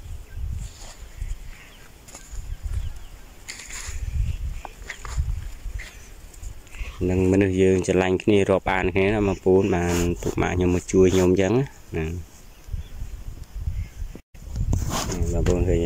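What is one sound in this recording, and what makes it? A blade chops into dry soil with dull thuds.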